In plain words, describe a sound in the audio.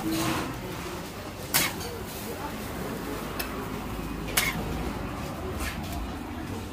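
A metal spatula scrapes and taps on a hot griddle.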